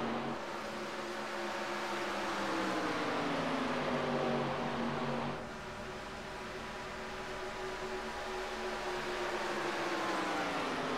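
Race car engines roar steadily, shifting in pitch as cars pass.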